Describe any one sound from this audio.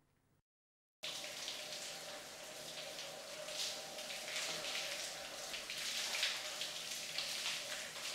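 Water pours from a shower head and splashes.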